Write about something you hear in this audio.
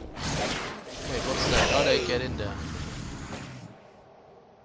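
A spell bursts with a fiery whoosh.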